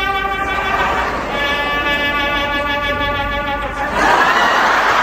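A trumpet plays a lively tune.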